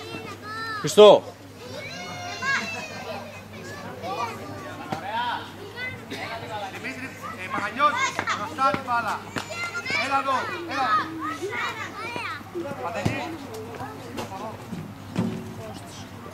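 A football is kicked with a dull thud.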